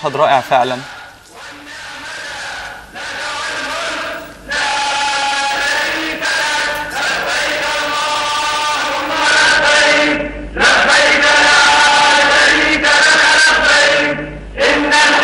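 A large crowd chants together outdoors.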